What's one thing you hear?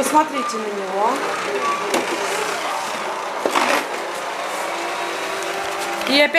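A robot vacuum hums steadily.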